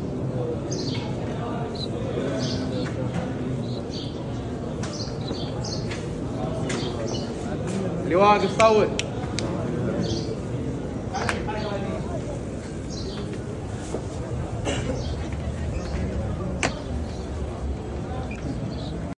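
A large crowd murmurs and chatters all around.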